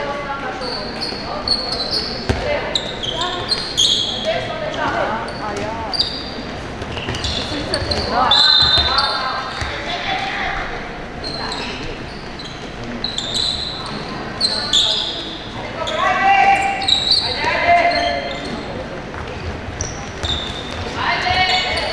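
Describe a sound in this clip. Young girls shout and call out to each other across the hall.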